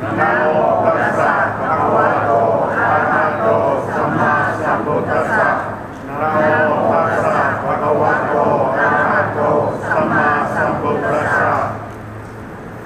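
An elderly man reads out steadily into a microphone, amplified through loudspeakers in a large echoing hall.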